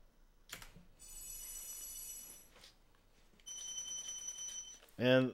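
Bright chimes tinkle as treasure is collected.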